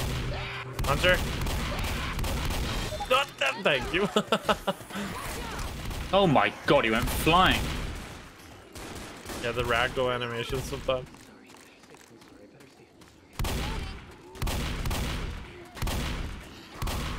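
A shotgun fires in loud, booming blasts.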